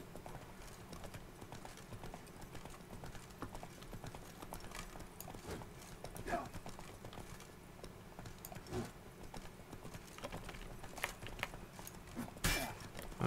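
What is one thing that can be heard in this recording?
A horse's hooves thud in a gallop.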